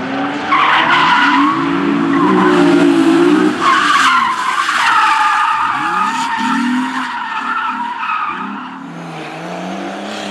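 A car engine revs hard and rises and falls in pitch.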